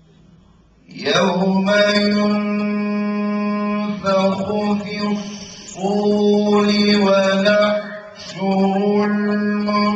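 A man chants in long, held notes, loud and close through a microphone.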